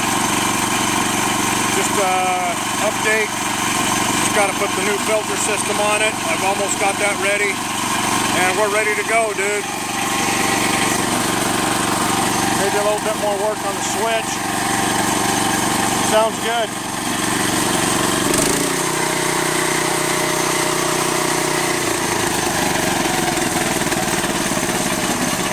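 A small petrol engine runs with a steady hum.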